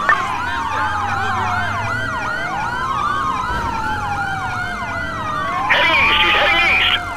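Police sirens wail close by, rising and falling quickly.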